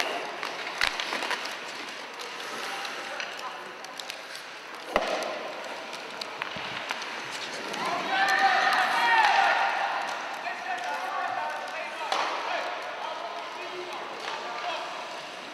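Hockey sticks knock and clatter on ice.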